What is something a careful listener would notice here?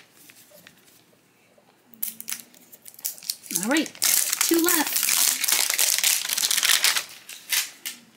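Crinkly foil wrapping rustles and tears.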